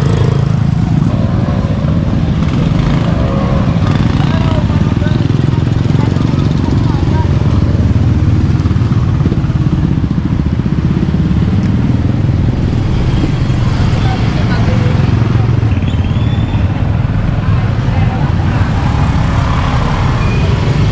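Motorbike engines putter and hum nearby as they pass.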